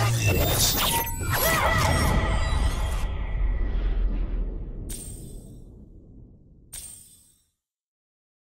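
Fans whoosh and swish through the air with a swirling rush.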